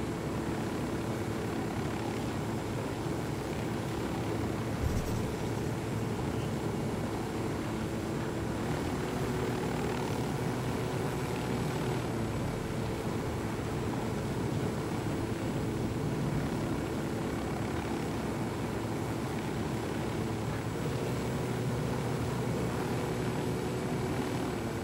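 A helicopter's rotor thumps and its engine drones steadily.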